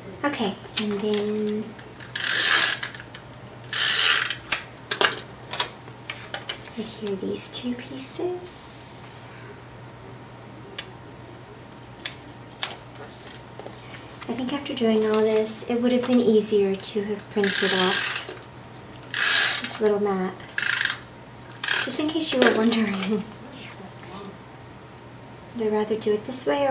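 Paper rustles and slides as cards are handled.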